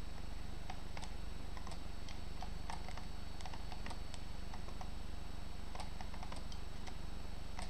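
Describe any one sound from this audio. Short, sharp clicks sound quickly one after another as chess pieces are moved.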